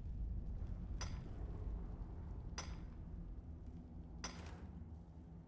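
A pickaxe strikes rock with sharp metallic clinks.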